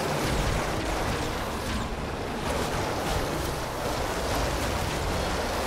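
Explosions burst and rumble.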